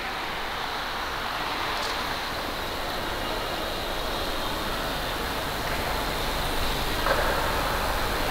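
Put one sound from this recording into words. Ice skates glide and scrape across the ice in a large echoing rink.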